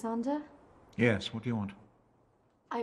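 An elderly man answers calmly from a doorway.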